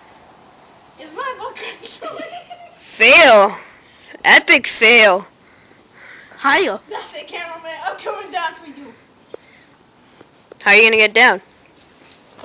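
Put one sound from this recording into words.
A boy talks and laughs loudly close by.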